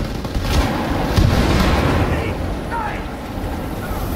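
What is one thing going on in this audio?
A flamethrower roars with a rushing blast of fire.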